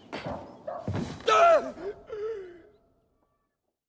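A body falls heavily to the ground.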